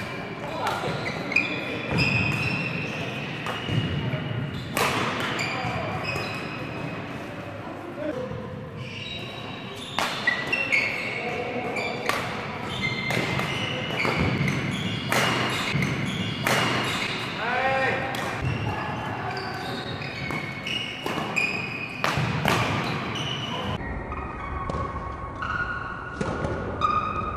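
Shuttlecocks are struck sharply with rackets, again and again, echoing in a large hall.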